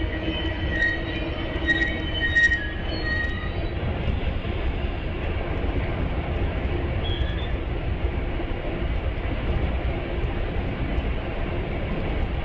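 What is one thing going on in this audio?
A train idles with a low, steady rumble.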